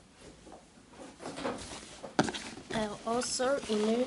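A cardboard box lid slides and scrapes open.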